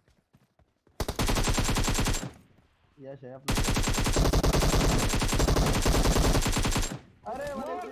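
An assault rifle fires rapid automatic bursts.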